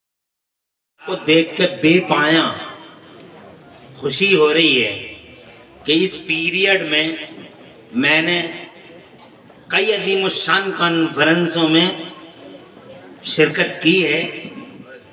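A man speaks with passion through a microphone, his voice echoing over a loudspeaker.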